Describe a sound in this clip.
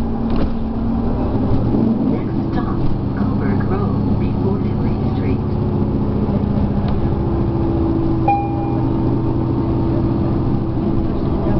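A diesel engine drones from inside an articulated city bus as it drives along.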